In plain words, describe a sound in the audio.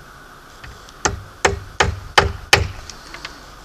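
Knocks and clunks sound as a drill is set against a wooden board.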